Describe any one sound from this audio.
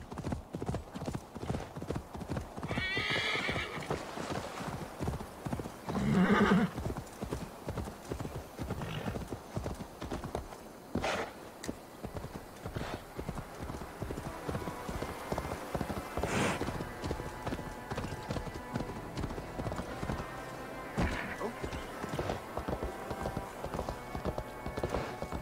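A horse gallops with quick, heavy hoofbeats.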